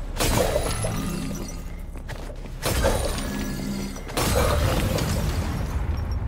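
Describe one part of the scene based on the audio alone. Magic bursts crackle and shatter.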